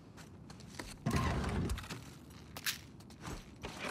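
A cabinet door creaks and bumps open.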